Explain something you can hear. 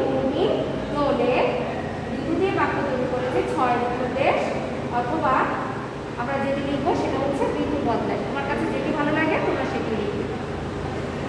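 A young woman speaks clearly and steadily, close by, as if teaching.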